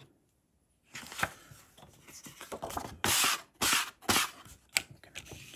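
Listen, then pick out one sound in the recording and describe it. A card rustles and flaps as it is picked up and handled.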